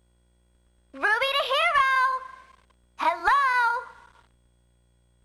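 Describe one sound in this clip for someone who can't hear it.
A small creature chatters in a high, squeaky cartoon voice.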